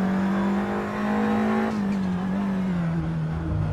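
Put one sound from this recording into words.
A racing car engine roars at high revs, then drops in pitch as the car brakes into a corner.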